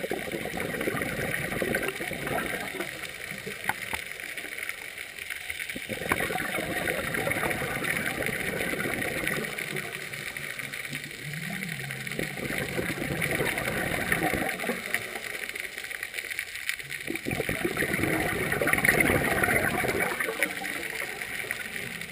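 Bubbles rush and gurgle loudly in bursts as a diver breathes out underwater.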